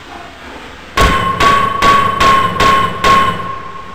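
A gun fires in a rapid burst of loud shots.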